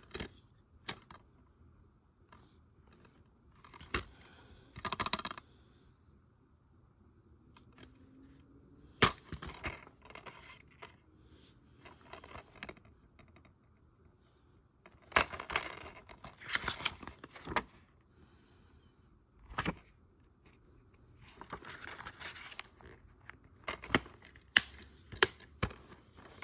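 A plastic case clicks and snaps open and shut.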